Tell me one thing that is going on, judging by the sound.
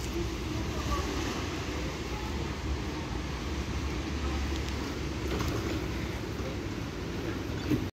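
A tram rumbles slowly along rails close by.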